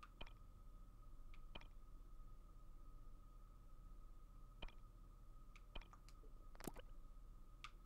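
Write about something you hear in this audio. Short electronic blips click as a game menu is browsed.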